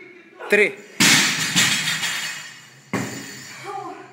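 A barbell crashes down onto a rubber floor.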